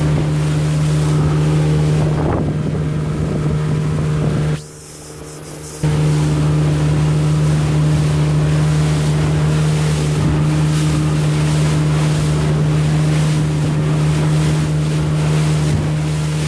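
An outboard motor drones steadily at speed.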